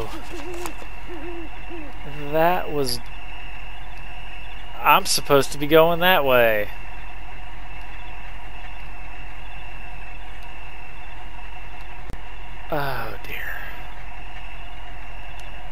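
A truck engine idles with a low, steady drone.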